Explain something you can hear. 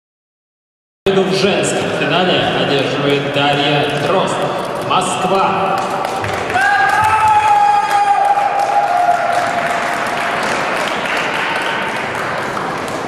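A man talks in an echoing hall.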